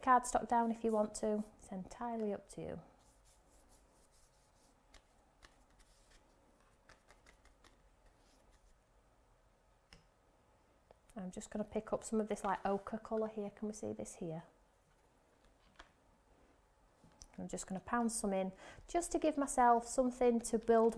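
A paintbrush brushes softly across paper.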